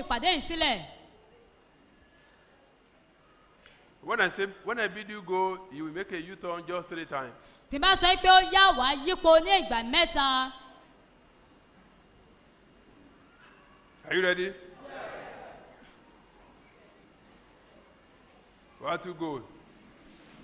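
An elderly man speaks with animation into a microphone in a large echoing hall.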